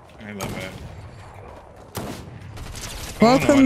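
Shotgun blasts ring out sharply.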